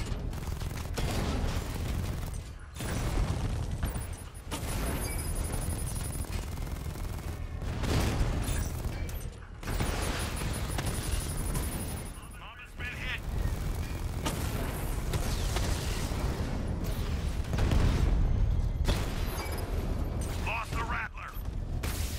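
A heavy armoured vehicle's engine roars and rumbles.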